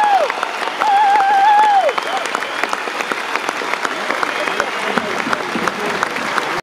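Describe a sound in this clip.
A crowd claps along in a steady rhythm.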